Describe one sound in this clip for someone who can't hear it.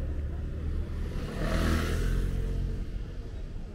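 A motor scooter drives past close by.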